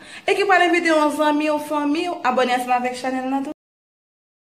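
A young woman talks with animation close to a phone microphone.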